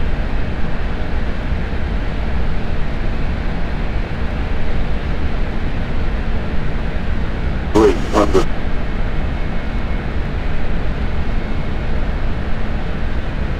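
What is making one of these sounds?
A jet airliner's engines roar steadily as it climbs.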